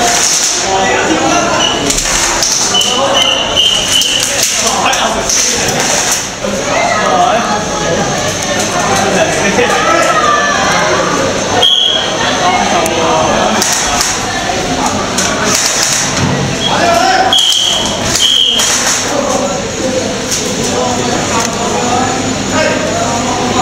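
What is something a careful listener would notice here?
Young men chatter nearby in a large echoing hall.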